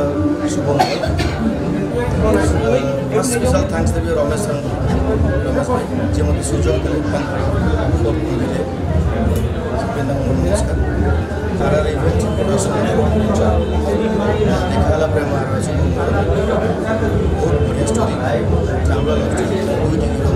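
A young man speaks calmly into a microphone up close.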